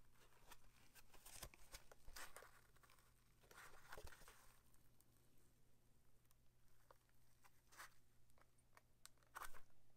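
Gloved hands rustle and scrape against a fabric case.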